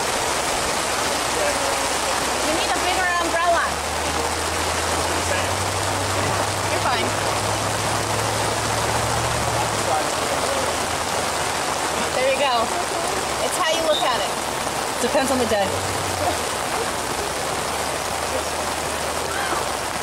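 Rain patters steadily on an umbrella close by.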